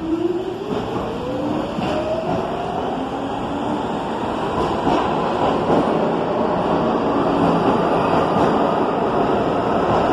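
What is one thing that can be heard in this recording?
A subway train rushes past loudly, its wheels rumbling and clattering on the rails.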